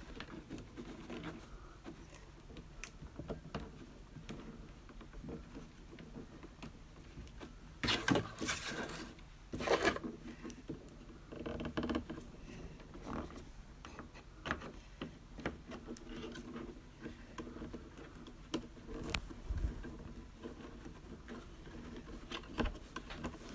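Thin wire scrapes and rattles against wood.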